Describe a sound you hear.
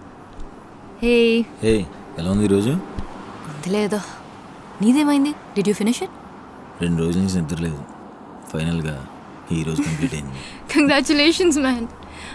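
A young woman speaks softly and cheerfully, close by.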